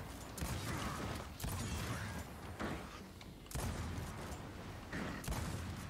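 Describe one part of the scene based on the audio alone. Rifle gunfire rattles in short bursts.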